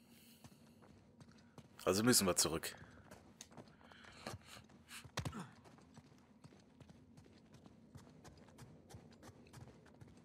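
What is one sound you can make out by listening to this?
Footsteps hurry across a stone floor.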